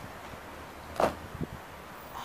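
A person lands hard on the ground with a thud.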